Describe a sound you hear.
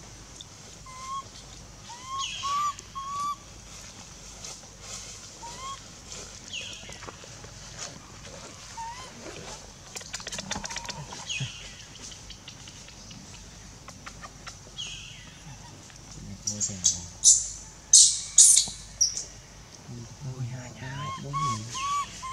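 A baby monkey squeaks in short high chirps.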